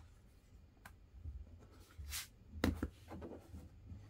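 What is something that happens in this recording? A paper comic slides across a table.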